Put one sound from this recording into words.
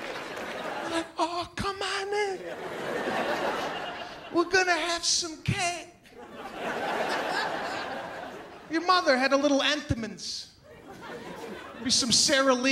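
A man talks animatedly into a microphone.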